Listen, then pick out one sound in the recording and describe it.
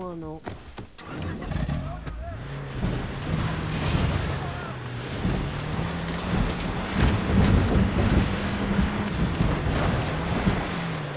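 A vehicle engine hums steadily as it drives.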